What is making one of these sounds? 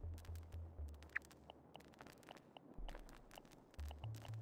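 Short soft blips click one after another as menu options are flipped through.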